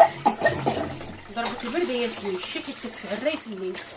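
Dishes clink and clatter in a sink.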